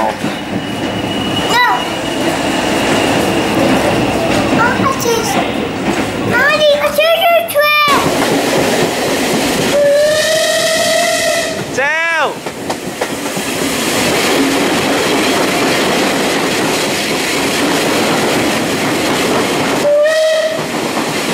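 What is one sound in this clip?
A steam train rumbles steadily along the track.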